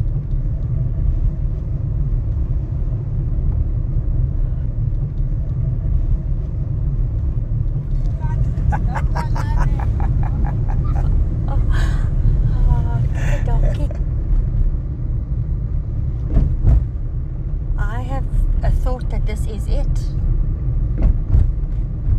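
A car drives along a paved road with a steady low rumble.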